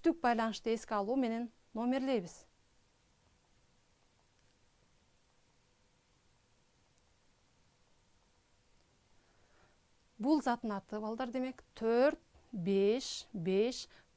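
A middle-aged woman speaks calmly and clearly into a close microphone, pausing in between.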